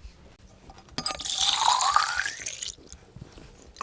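Water pours from a jug into a metal pitcher.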